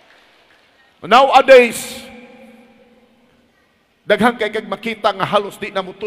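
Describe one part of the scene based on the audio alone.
A man speaks forcefully into a microphone in a large echoing hall.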